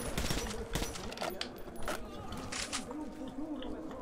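Metal clicks and clatters as a gun is reloaded.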